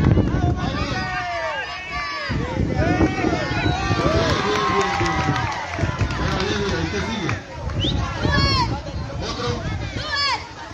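A crowd of young people shouts and cheers excitedly outdoors.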